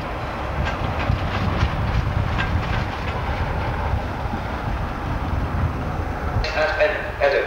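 A diesel locomotive engine rumbles nearby.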